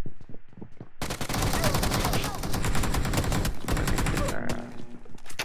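A grenade explodes with a loud roar.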